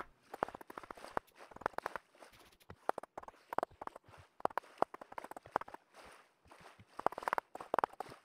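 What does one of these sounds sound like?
Wooden blocks are set down with short, hollow knocks, one after another.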